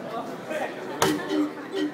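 A drum is struck with a loud thump.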